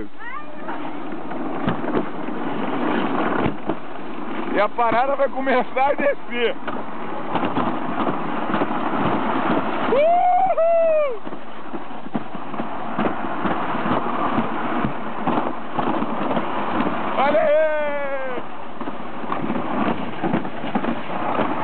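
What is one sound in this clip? A sled rumbles and rattles steadily along a track.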